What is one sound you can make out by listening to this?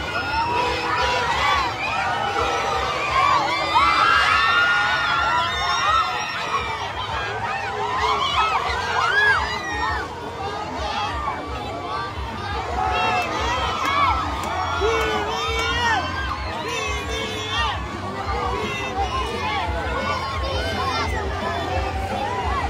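A large outdoor crowd cheers and shouts excitedly.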